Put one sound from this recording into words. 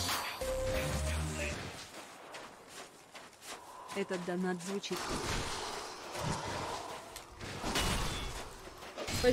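Swords clang and strike in a fight.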